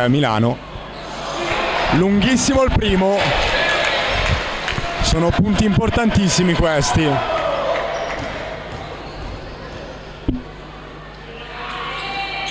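A crowd murmurs and calls out in an echoing hall.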